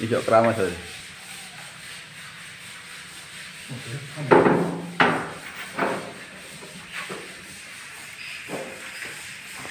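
A wooden door bumps and knocks as it is handled.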